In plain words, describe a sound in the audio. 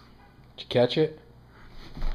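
A dog gives a short whine.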